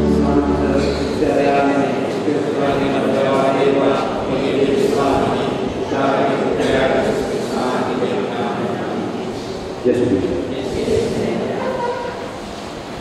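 An older man chants into a microphone in an echoing hall.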